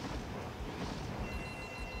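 An explosion bursts with a dull boom.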